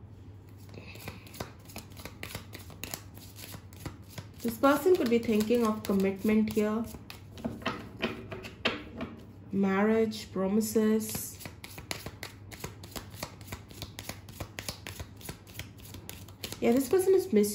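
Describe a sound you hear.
Playing cards flick and patter softly as they are shuffled by hand.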